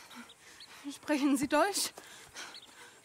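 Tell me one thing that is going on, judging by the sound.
A woman asks a question in a halting voice.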